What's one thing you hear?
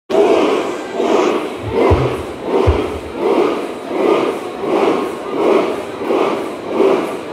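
A rock band plays loudly in a large echoing hall, heard from the crowd.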